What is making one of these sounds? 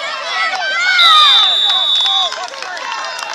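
A referee's whistle blows one long blast.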